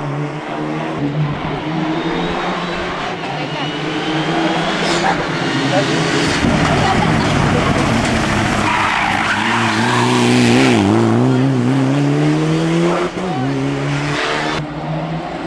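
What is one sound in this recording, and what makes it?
A second turbocharged rally car accelerates hard uphill through the gears.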